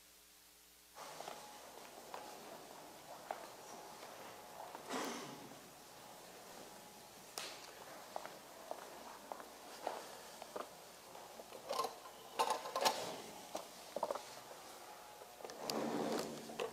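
Equipment knocks and clatters as it is moved about.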